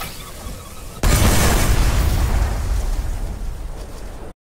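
A powerful gun blasts with a loud, roaring burst that slowly fades.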